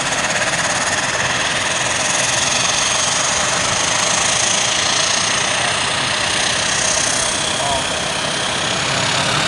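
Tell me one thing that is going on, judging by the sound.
A propeller plane's engines whine and roar steadily close by.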